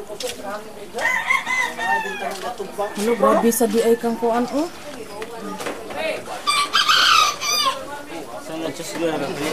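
A man talks with animation nearby.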